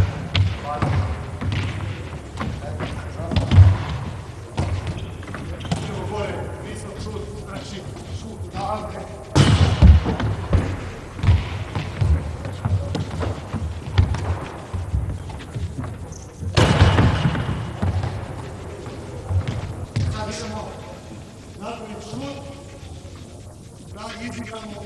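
A man calls out to players, echoing in a large hall.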